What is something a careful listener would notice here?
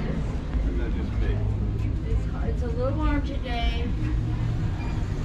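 A man speaks briefly nearby indoors.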